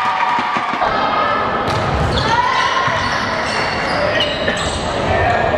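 Young women shout and cheer in a large echoing hall.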